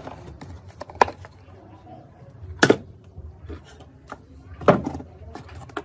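Plastic parts click and knock as a cover is pried off.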